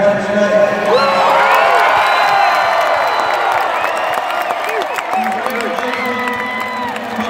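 A crowd cheers and whistles in a large arena.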